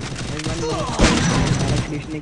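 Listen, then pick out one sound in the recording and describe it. An explosion booms with a burst of flames.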